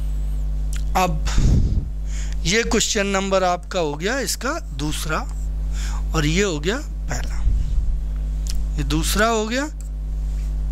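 A man speaks with animation through a microphone, lecturing.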